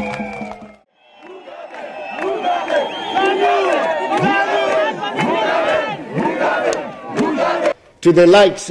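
A crowd chants and sings loudly together.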